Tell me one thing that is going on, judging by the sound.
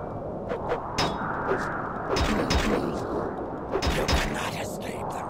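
Metal weapons clash with sharp blows.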